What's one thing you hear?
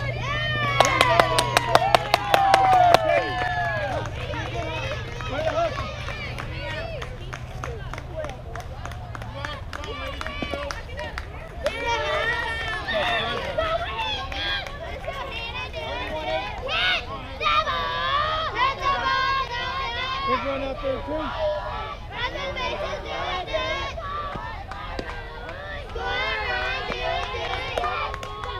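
Young women shout and cheer outdoors across a playing field.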